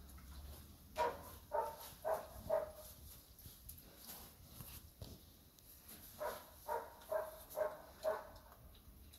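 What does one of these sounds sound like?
Pigs grunt in short rhythmic bursts close by.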